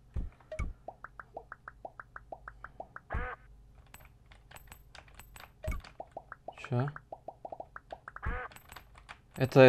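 A video game's coins chime in quick repeated blips.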